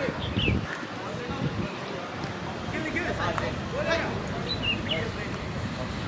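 Young men call out and shout to each other across an open field.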